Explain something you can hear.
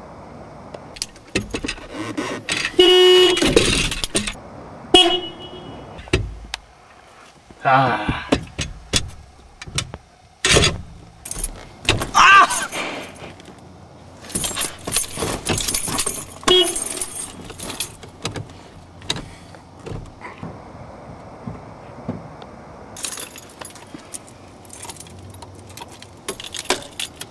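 A man talks nearby in a car.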